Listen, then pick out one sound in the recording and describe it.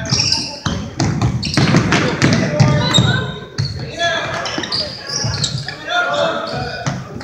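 Children and adults shout and cheer from the sidelines in a large echoing hall.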